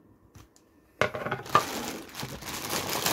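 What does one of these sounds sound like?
Plastic wrap crinkles and rustles as a hand handles it.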